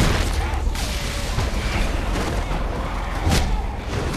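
Heavy punches thud.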